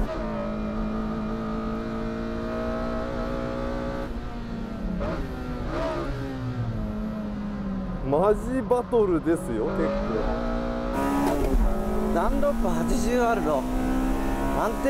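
A car engine roars loudly from inside the cabin, its pitch rising and falling with gear changes.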